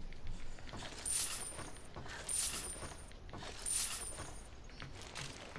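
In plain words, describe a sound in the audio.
A bright chime rings several times in quick succession.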